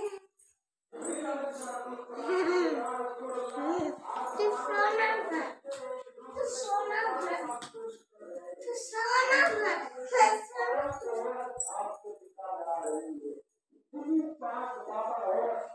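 A young girl talks and chatters close by.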